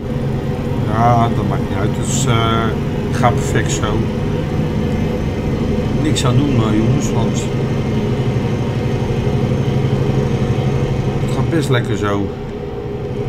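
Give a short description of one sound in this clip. A middle-aged man talks casually into a microphone, close by.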